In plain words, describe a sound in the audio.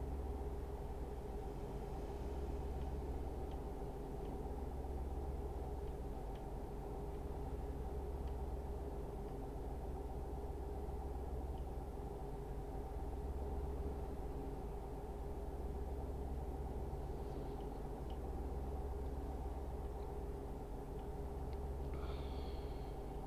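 Tyres hum on a road.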